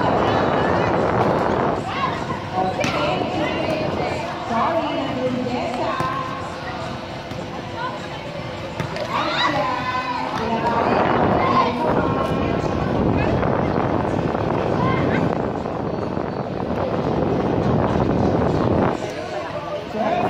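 Young women call out and chatter nearby.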